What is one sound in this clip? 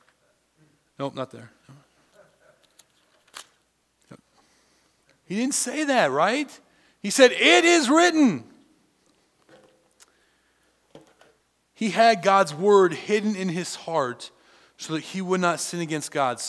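A man speaks with emphasis through a microphone in a large room, with pauses between phrases.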